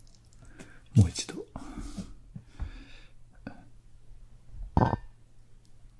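A ceramic cup knocks and clinks on a hard surface.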